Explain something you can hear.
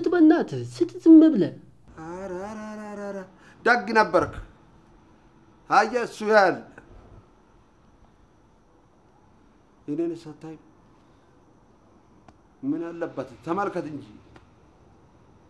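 A middle-aged man speaks with emotion, close by.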